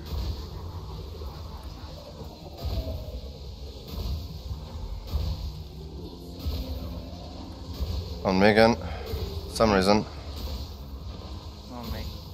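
A spacecraft engine hums with a deep, steady rumble.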